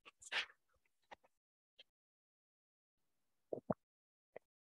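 A young man gulps water from a plastic bottle.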